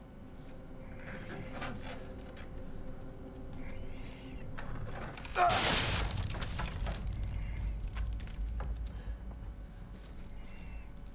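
Footsteps creak and thud on wooden boards and stairs.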